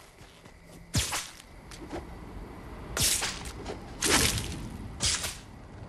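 A web shooter fires with a quick whoosh.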